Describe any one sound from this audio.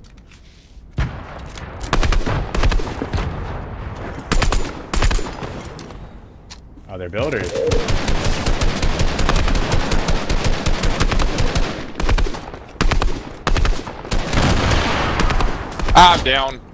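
Gunshots fire in rapid bursts.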